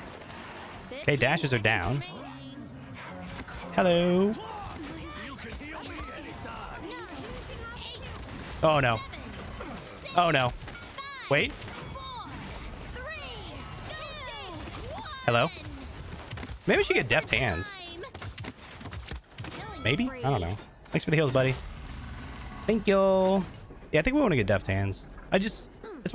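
Shotgun blasts from a game boom in short bursts.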